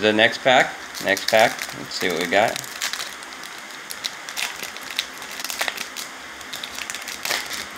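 A foil wrapper crinkles and rustles in someone's hands.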